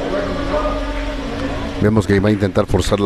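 A cue strikes a billiard ball with a sharp click.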